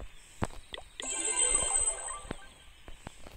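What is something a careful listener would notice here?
A game jingle plays as coins are collected.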